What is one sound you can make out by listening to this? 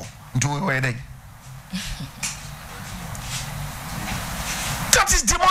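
A middle-aged man speaks with animation into a microphone, close up.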